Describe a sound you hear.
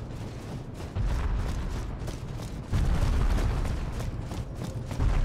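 A giant creature's club slams down with a deep thud.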